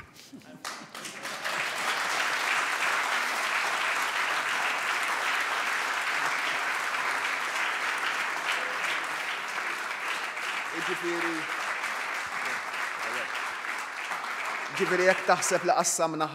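A crowd applauds loudly and steadily.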